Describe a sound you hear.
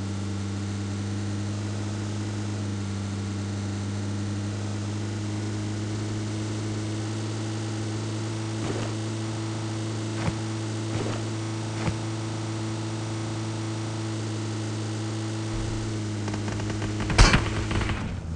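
A vehicle engine hums steadily as it drives along.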